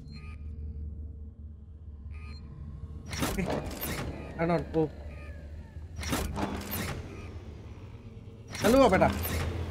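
A metal lever is pulled with a heavy clunk.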